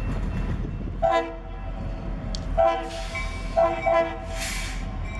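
A locomotive horn sounds several loud blasts.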